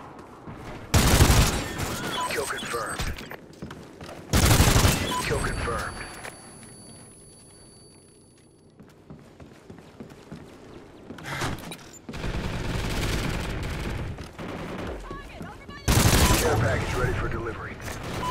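Gunfire rattles in short, loud bursts.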